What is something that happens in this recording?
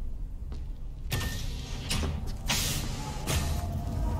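A heavy sliding door opens with a sharp hiss.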